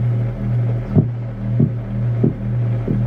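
Sharp electronic knocks come in over the pulse now and then.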